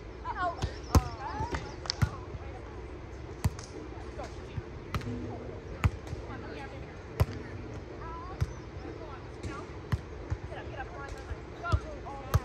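Hands thump a volleyball back and forth outdoors.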